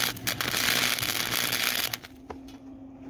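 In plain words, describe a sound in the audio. A cutting torch hisses and crackles with sparks.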